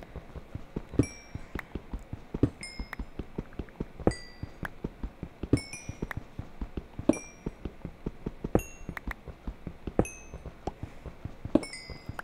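A stone block breaks apart with a crunch every second or so.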